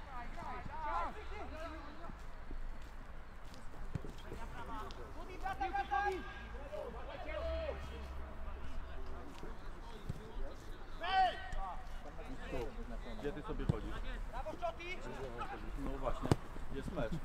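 Young men shout to each other across an open football pitch.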